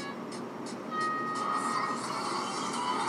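Short countdown beeps sound from a small phone speaker.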